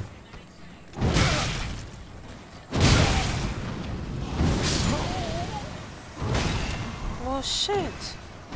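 A sword clangs and slashes against a monster.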